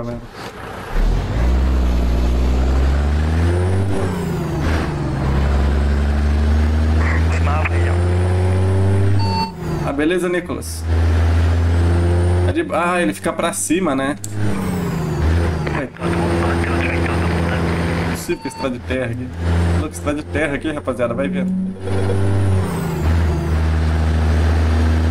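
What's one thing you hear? A truck engine hums low and steadily, rising and falling with the throttle.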